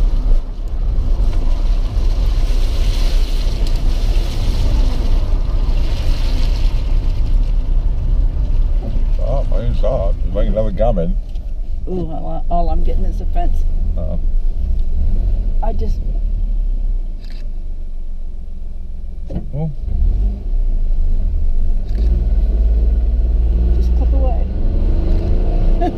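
Raindrops patter on a car windscreen.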